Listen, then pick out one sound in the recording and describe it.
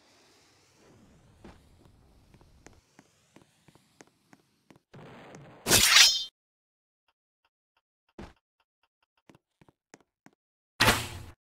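Footsteps thud on a wooden pier.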